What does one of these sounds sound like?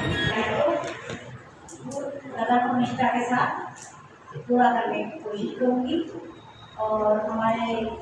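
A middle-aged woman speaks into a microphone over a loudspeaker, in an echoing room.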